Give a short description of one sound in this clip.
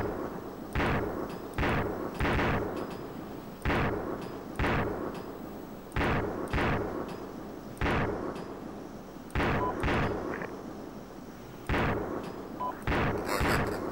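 Heavy gunshots boom again and again, each followed by a rolling echo.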